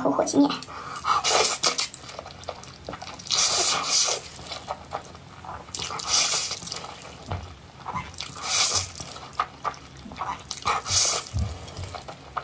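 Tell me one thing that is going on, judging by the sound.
A young woman slurps noodles loudly, close up.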